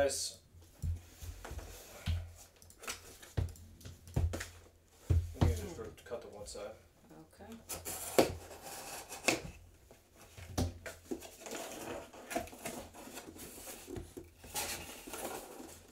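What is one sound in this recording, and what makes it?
A cardboard box is handled, with knocks and scrapes.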